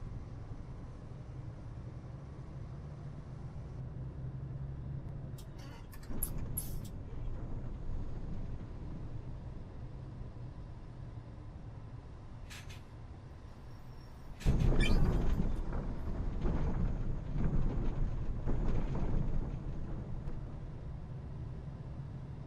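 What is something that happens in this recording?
A bus engine hums low and steady as the bus drives along.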